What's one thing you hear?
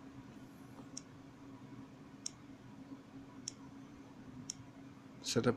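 A fingertip taps on a smartphone touchscreen.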